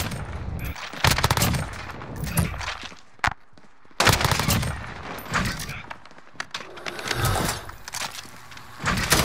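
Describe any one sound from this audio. Rapid gunfire rattles in short, loud bursts.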